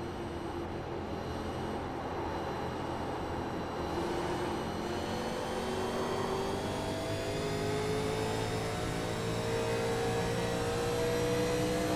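A racing car engine roars steadily, its pitch slowly rising.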